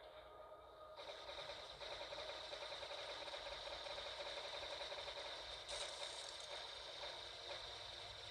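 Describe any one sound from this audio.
Energy weapons fire in a continuous, crackling stream.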